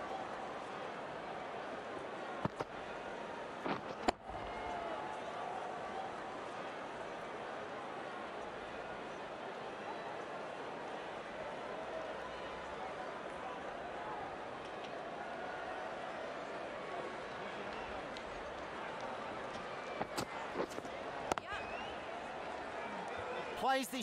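A large crowd murmurs and cheers steadily.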